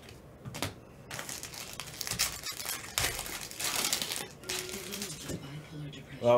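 Plastic wrapping crinkles and tears as a pack is opened.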